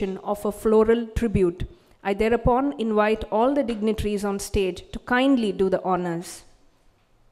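A woman speaks clearly over a loudspeaker in a large hall.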